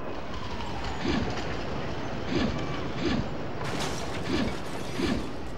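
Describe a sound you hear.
Dull thumps sound several times.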